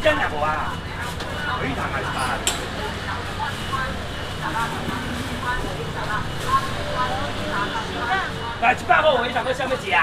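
Several women and men talk and chatter over each other nearby.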